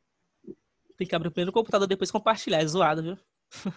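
A young man speaks with animation over an online call.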